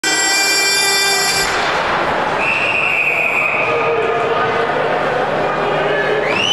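Ice skates scrape and hiss across the ice in a large echoing arena.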